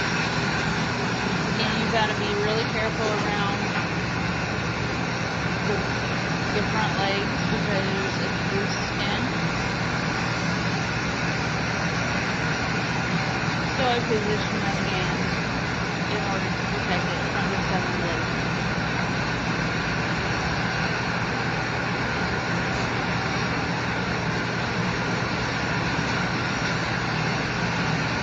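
Electric clippers buzz steadily close by.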